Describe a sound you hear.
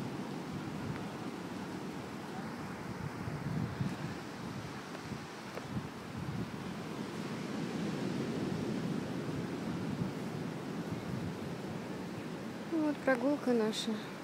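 Ocean waves roll and crash steadily in the distance.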